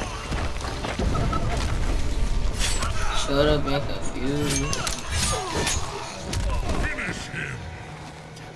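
Heavy blows land in a fight, with thuds and cracks.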